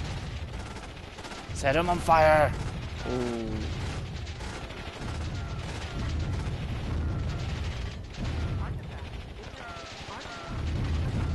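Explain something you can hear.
Gunfire crackles rapidly.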